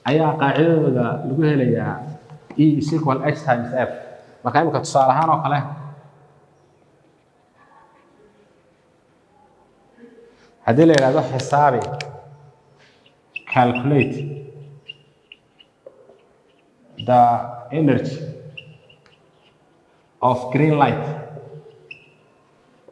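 A man speaks clearly and with emphasis, nearby, in short bursts.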